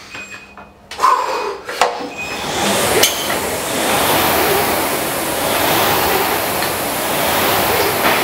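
Rowing machine fans whir and whoosh with each stroke.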